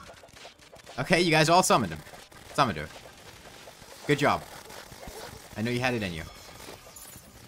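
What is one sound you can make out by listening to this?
Loud game sound effects burst out in short blasts.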